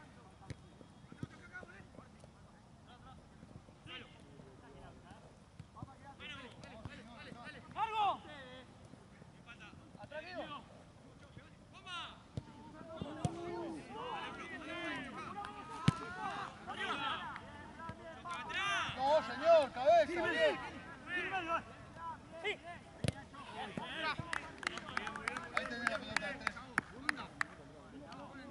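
A football thuds as players kick it.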